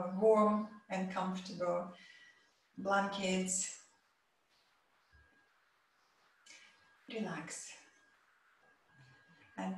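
A woman speaks calmly and softly into a close microphone, with pauses.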